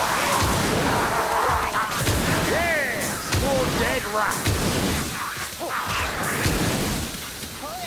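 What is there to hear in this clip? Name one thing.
Heavy metal gauntlets thud against enemies.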